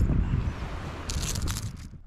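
A fish splashes and drips water as it is lifted out of the water.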